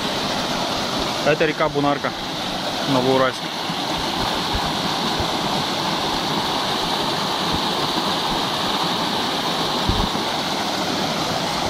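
A shallow stream rushes and babbles over rocks outdoors.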